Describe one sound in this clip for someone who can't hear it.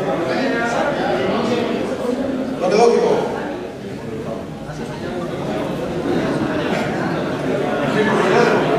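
A middle-aged man speaks calmly into a microphone in a room with a slight echo.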